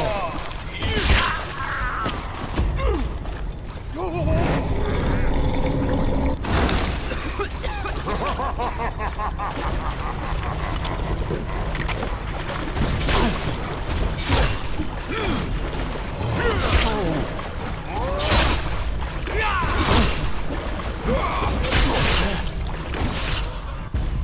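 Swords clash and strike with sharp metallic blows.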